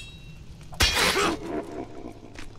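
A wooden crate smashes apart.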